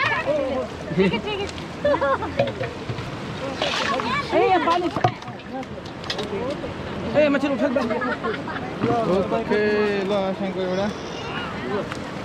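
Several men and women talk and call out nearby.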